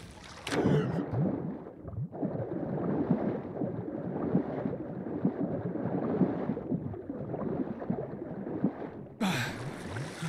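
Water swirls and bubbles in a dull, muffled rush, as if heard from underwater.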